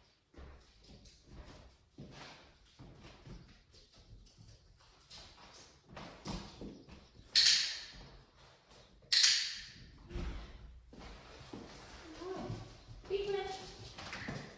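A dog's paws patter on a hard floor.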